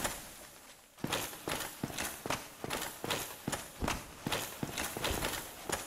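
Heavy armored footsteps clank steadily on stone in an echoing corridor.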